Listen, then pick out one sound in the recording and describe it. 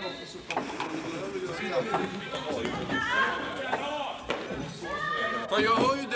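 Young players shout and call to each other in a large echoing hall.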